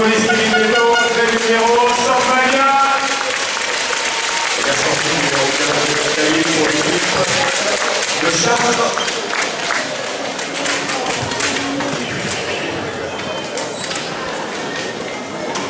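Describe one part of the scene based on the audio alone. A crowd chants and cheers loudly in a large echoing hall.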